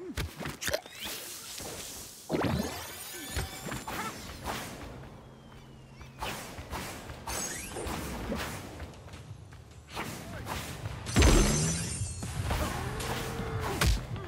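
Game footsteps patter quickly.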